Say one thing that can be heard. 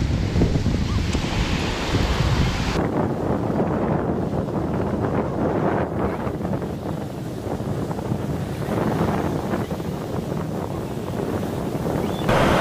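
Ocean waves crash and wash over rocks close by.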